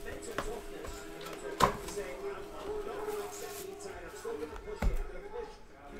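A cardboard box is opened with soft knocks.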